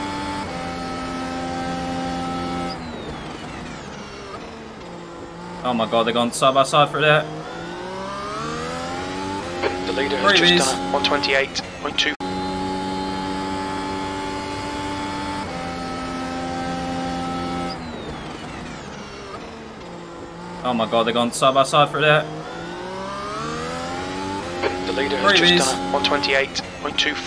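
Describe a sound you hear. A racing car engine roars, climbing and dropping in pitch as it shifts through gears.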